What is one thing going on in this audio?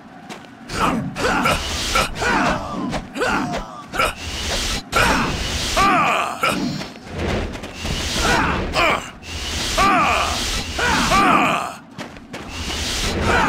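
Blades swing and clash in a fight.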